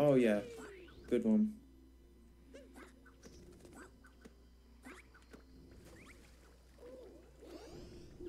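Short cartoonish sound effects play as a game character jumps and runs.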